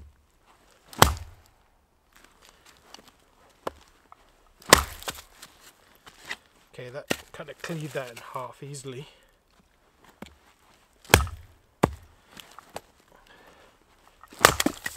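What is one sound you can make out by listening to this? An axe splits firewood with sharp cracks.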